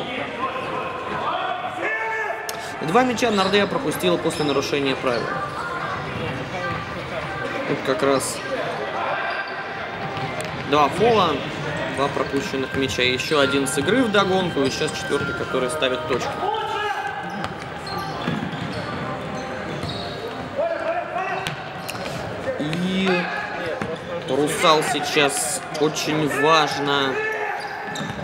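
A ball thuds as it is kicked and bounces on a hard floor.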